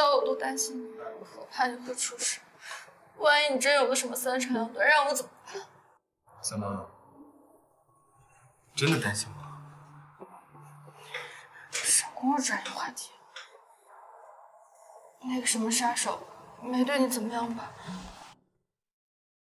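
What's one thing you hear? A young woman speaks close by, tense and upset.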